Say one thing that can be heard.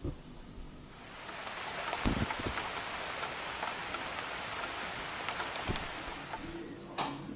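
Rain patters steadily on a wooden deck outdoors.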